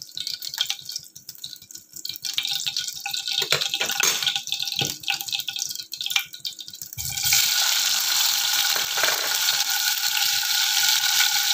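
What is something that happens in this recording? Hot oil crackles and pops in a frying pan.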